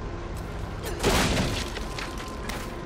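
A wooden crate smashes apart with a loud crack.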